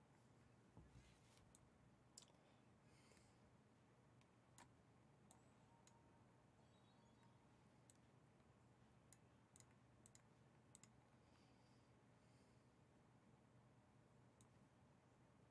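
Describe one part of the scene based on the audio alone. Short game sound effects click and chime.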